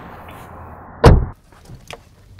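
A car door slams shut with a heavy thud.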